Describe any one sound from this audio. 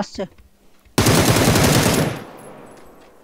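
A rifle fires a loud burst of shots.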